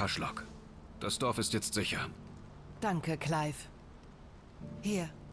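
A young woman answers calmly.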